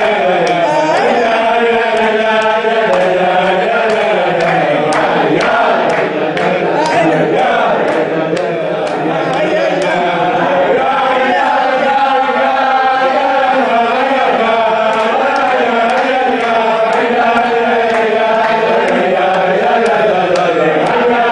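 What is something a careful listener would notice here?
A man chants loudly and steadily close by.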